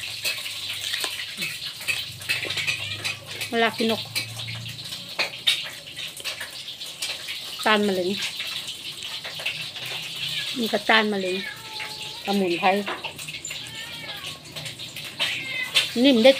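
A woman chews food with wet smacking sounds.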